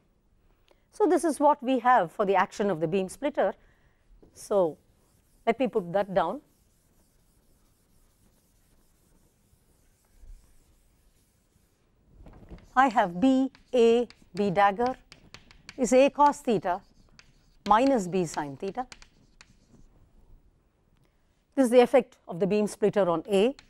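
A woman lectures calmly, heard through a microphone.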